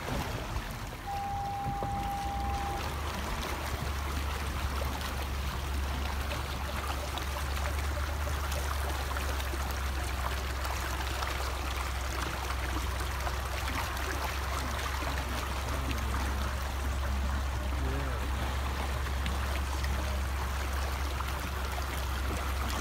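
A car drives slowly through shallow water, its tyres splashing.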